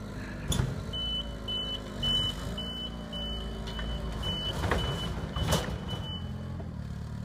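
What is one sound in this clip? A forklift's warning beeper beeps in a steady rhythm.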